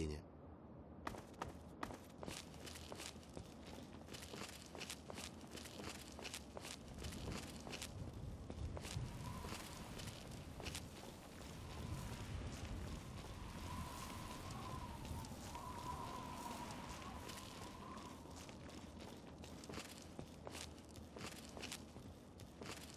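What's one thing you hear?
Footsteps crunch over gravel and rubble.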